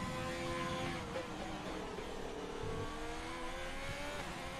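A racing car engine drops in pitch as the car brakes hard for a slow corner.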